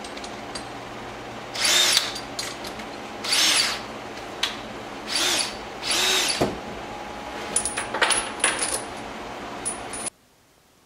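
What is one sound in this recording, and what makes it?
Metal tools clink on a workbench.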